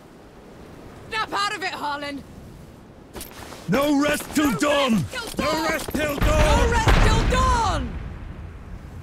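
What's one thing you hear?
A young woman speaks with determination.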